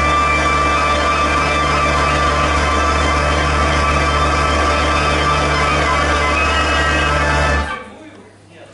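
A wind instrument plays long, held notes.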